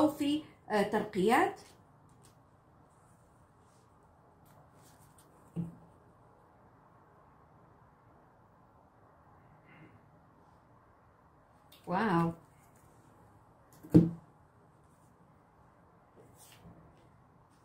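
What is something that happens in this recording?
Cards are laid down softly on a table.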